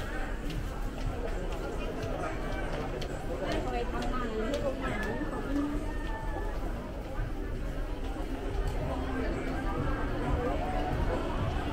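A crowd of shoppers murmurs and chatters nearby in an indoor space.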